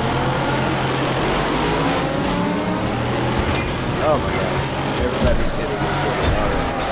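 Several race car engines roar and whine together.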